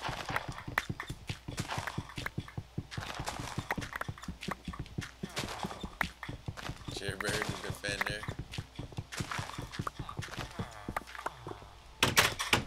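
Wooden blocks are chopped with rapid, repeated knocks.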